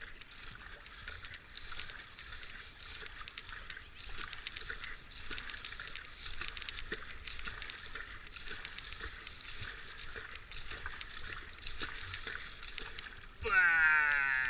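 A kayak paddle splashes and dips into calm water with steady strokes.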